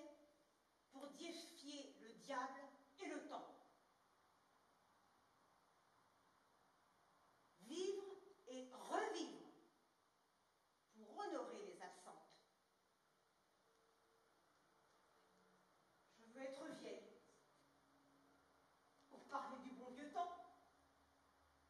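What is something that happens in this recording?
An elderly woman speaks theatrically in short bursts, through a microphone in a large hall.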